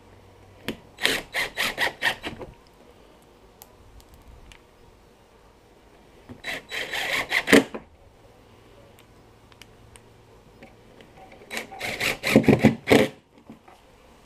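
An impact driver hammers in short, loud bursts.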